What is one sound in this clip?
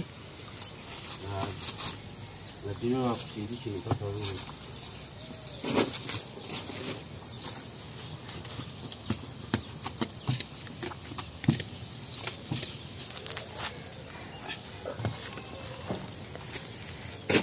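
Bricks knock together as they are moved by hand.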